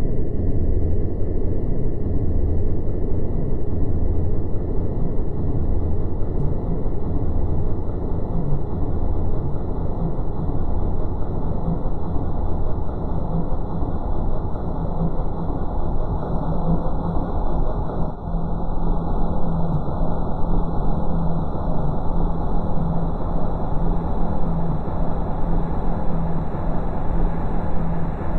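Electronic music plays steadily with a deep, pulsing bass.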